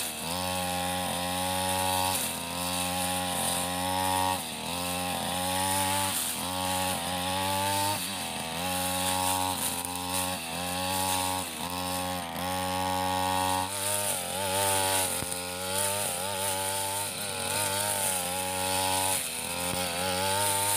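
A petrol brush cutter engine drones loudly, revving up and down every second or so.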